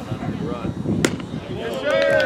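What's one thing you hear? A baseball bat cracks against a ball.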